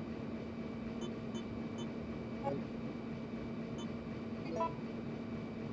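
Short electronic blips sound as menu choices change.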